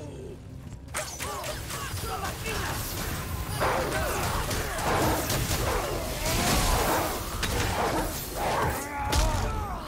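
Magical blasts crackle and explode.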